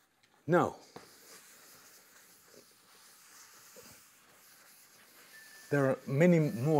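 A felt eraser rubs and swishes across a chalkboard.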